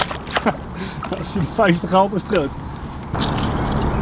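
A fish thrashes and splashes in the water.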